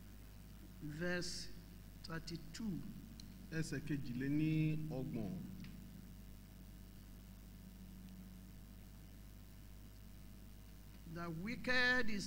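A man speaks slowly and solemnly through a microphone in a large room, with pauses between phrases.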